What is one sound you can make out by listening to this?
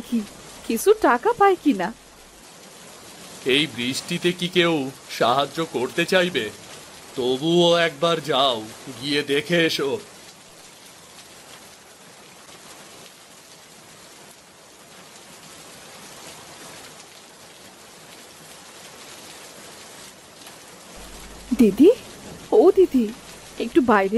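A woman speaks with concern.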